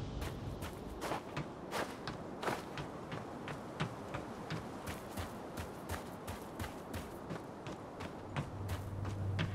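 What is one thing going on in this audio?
Footsteps crunch quickly over rough ground.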